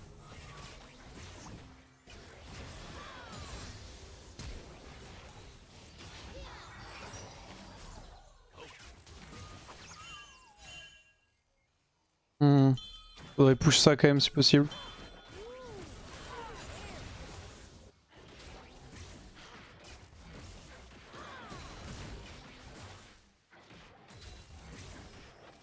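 Video game spell effects whoosh and zap throughout.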